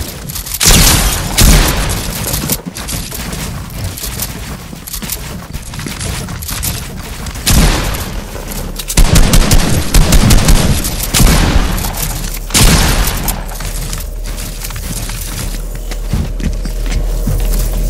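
Game building pieces snap into place with quick clicks.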